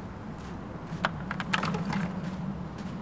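A sports bag is set down on a bench with a thud and a rattle.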